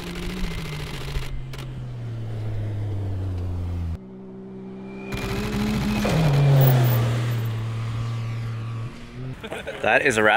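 An engine drones and revs up and down.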